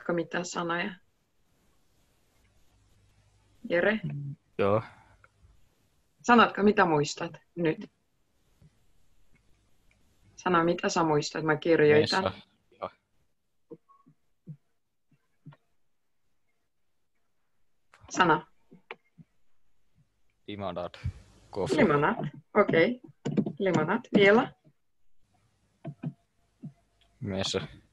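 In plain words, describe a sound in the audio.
A young woman talks calmly over an online call, in short bursts with pauses.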